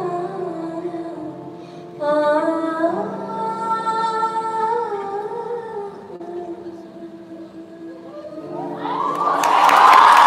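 A piano plays a slow, sustained melody in a large hall.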